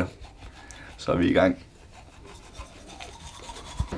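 A young man brushes his teeth with a toothbrush.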